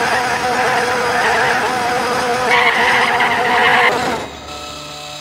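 A racing car engine roars at high revs.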